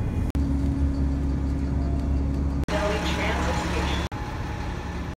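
A tram rumbles past close by.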